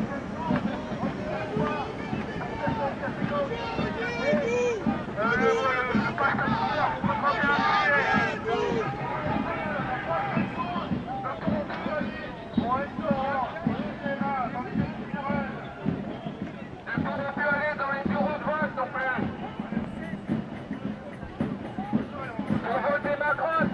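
A large crowd of men and women chants and talks loudly outdoors.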